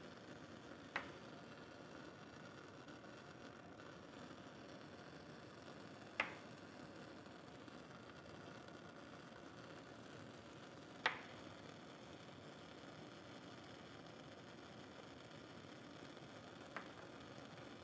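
Small glass vials are set down on a hard surface with sharp clinks.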